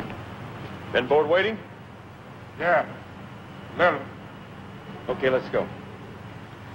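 A man speaks in short, firm phrases close by.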